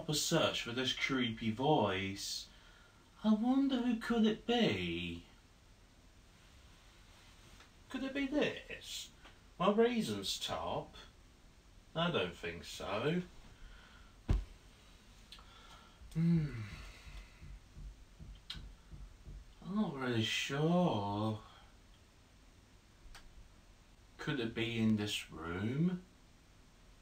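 A young man talks calmly and close by, in short bursts with pauses.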